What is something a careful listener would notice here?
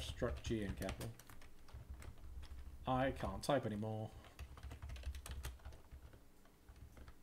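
Keys clack on a keyboard.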